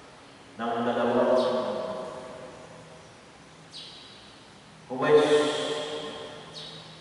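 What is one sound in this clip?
A man chants into a microphone, heard through loudspeakers in a large echoing hall.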